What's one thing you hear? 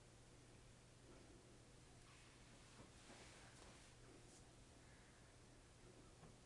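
An elderly woman speaks quietly nearby.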